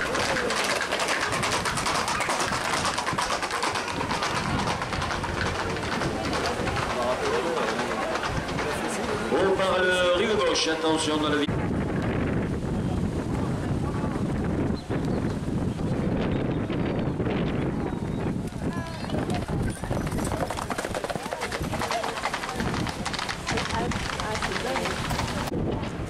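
A crowd of people chatters and calls out nearby, outdoors.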